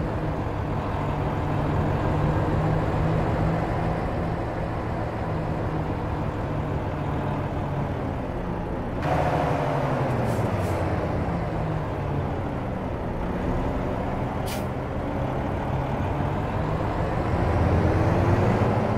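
A truck engine rumbles steadily, rising and falling in pitch as it drives.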